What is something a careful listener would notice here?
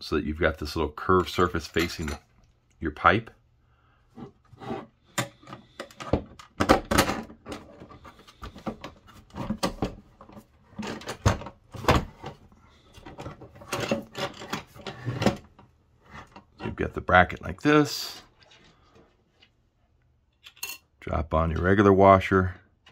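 Metal parts clink and scrape together as they are fitted by hand.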